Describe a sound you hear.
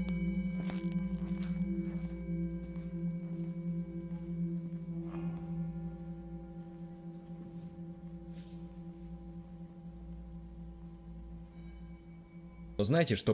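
A large singing bowl hums with a deep, steady ringing tone that slowly fades.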